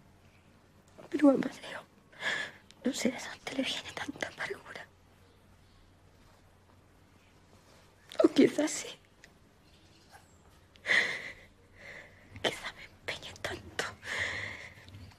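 A young woman speaks softly and tearfully, close by.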